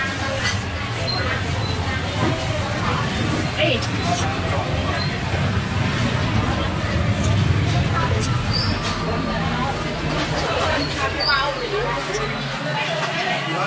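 Street traffic hums outdoors.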